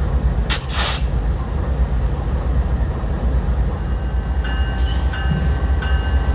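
A diesel locomotive engine idles with a deep, steady rumble close by.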